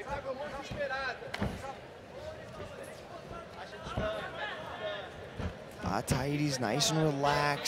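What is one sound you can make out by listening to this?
A crowd murmurs and calls out in a large hall.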